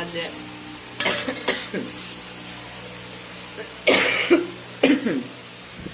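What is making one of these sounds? Metal plates clink against each other.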